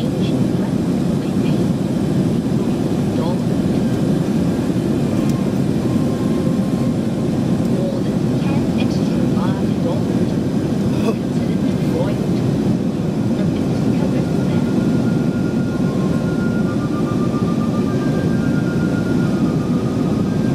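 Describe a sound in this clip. A jet airliner's engines roar steadily from inside the cabin.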